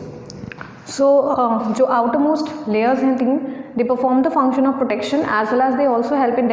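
A young woman speaks calmly and clearly, as if teaching.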